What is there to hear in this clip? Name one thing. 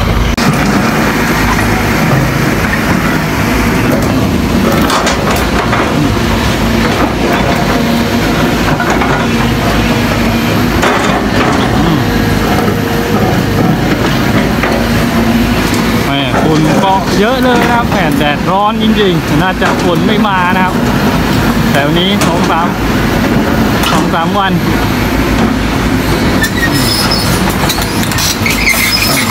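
An excavator bucket scrapes and grinds through rocky soil.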